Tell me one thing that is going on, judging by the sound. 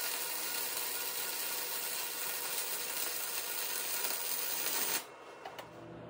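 An arc welder crackles and hisses steadily.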